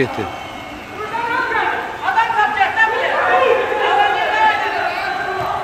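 Several young men call out to each other outdoors.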